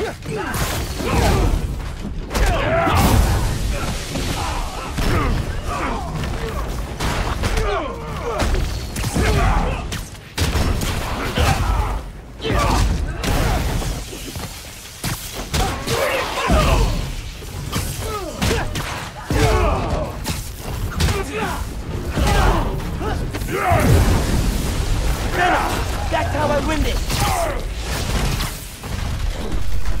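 Heavy punches and kicks land with dull thuds.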